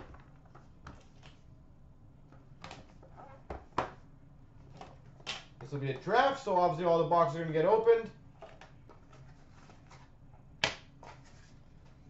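Foil card packs crinkle and tap softly as they are handled.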